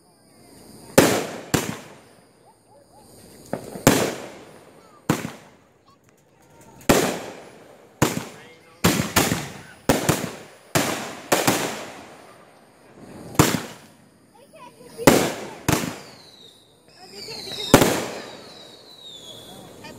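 Fireworks burst with loud booming bangs that echo away.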